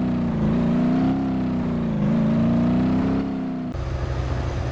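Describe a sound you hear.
A truck engine hums and varies in pitch.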